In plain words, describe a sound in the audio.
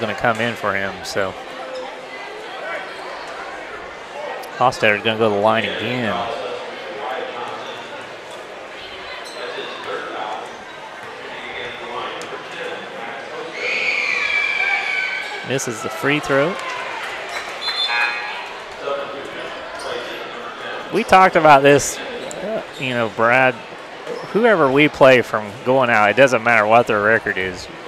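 A large crowd murmurs in an echoing gym.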